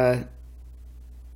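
A young woman says a brief word up close.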